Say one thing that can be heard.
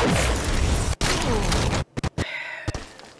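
A loud explosion bursts and crackles.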